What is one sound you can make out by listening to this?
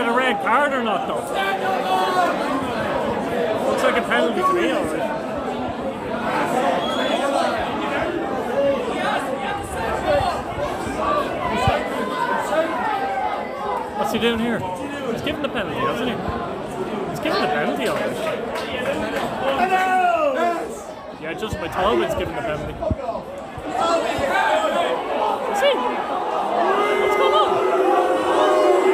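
Men close by talk and shout with animation.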